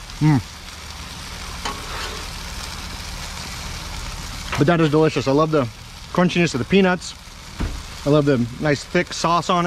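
A metal spatula scrapes and taps against a griddle.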